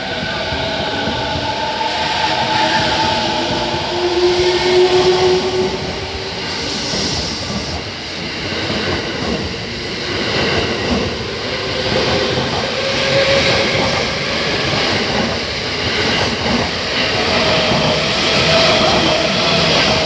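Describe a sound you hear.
Train wheels squeal with a high, wavering whine.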